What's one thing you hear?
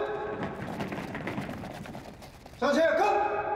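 A man shouts commands in an echoing hall.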